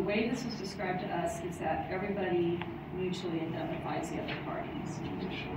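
A woman speaks calmly in a quiet room.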